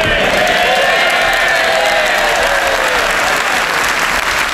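A crowd of men and women cheers and shouts.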